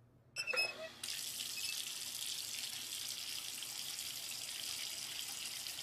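Water runs steadily from a tap.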